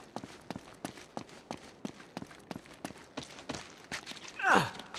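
Quick footsteps run on stone.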